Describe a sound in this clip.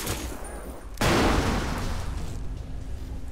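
A sniper rifle fires a single loud shot that echoes away.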